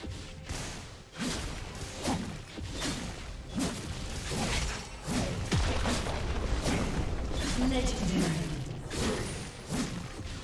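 Video game battle effects whoosh and crash in rapid bursts.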